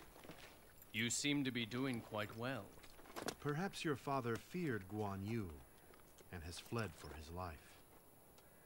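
A man speaks calmly and slyly.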